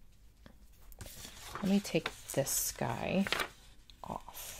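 Paper pages rustle as they are lifted and turned.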